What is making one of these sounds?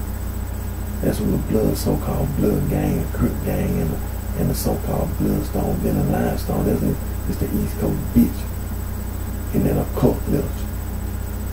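A man speaks close into a microphone in short bursts.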